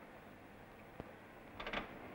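A metal door lock rattles and clicks.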